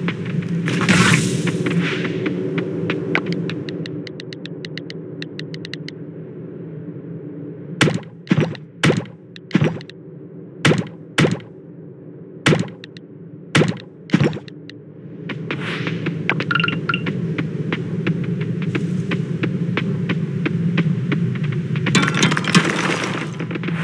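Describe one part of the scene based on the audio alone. Steady game music plays throughout.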